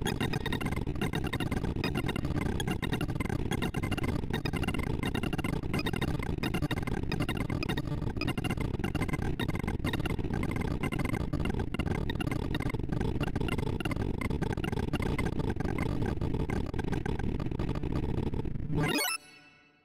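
Rapid electronic beeps chirp at rapidly changing pitches.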